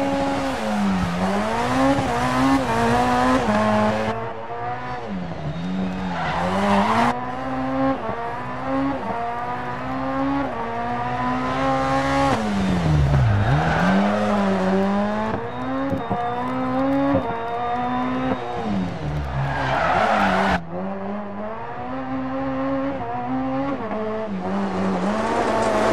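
A rally car engine revs hard, rising and falling as it shifts gears.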